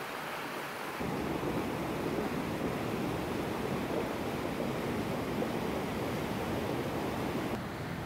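A torrent of muddy water roars down a slope outdoors.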